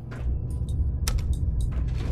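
A button clicks on an elevator panel.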